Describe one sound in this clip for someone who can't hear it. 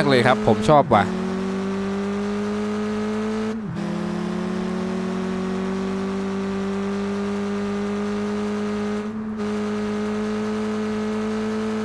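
A car engine drones steadily at high speed.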